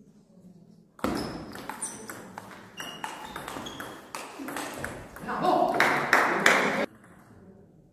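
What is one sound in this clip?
A table tennis ball clicks back and forth between paddles and the table in a large hall.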